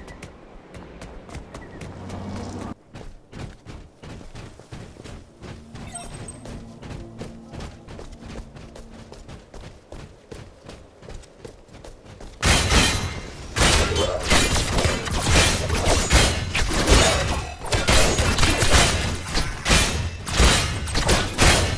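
Melee weapons clash and thud in a fast fight.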